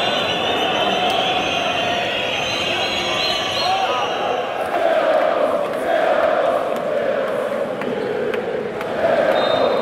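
A large crowd roars and cheers loudly in an echoing arena.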